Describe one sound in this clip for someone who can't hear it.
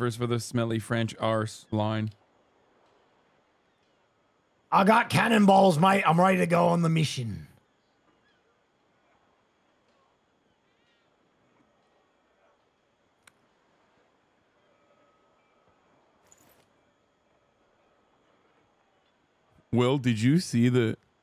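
A man speaks in a deep, calm voice, with pauses.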